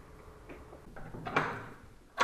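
A door lock clicks and rattles as a knob is turned.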